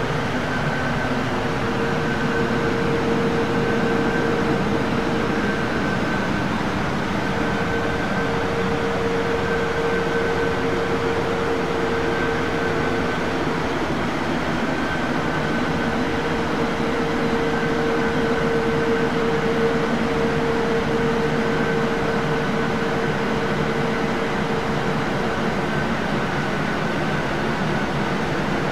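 Jet engines roar steadily during flight.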